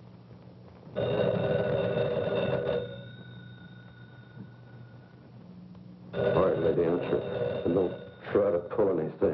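An old telephone bell rings loudly in bursts.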